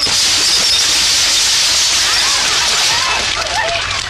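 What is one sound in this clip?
Wooden crates and glass bottles crash and shatter.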